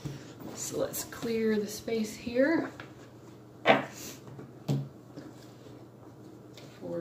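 Playing cards are shuffled and tapped down on a table.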